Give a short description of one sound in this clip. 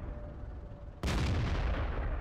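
A tank cannon fires with a loud, sudden boom.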